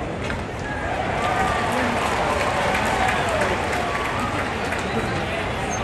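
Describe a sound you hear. A stadium crowd cheers loudly for a moment and then settles.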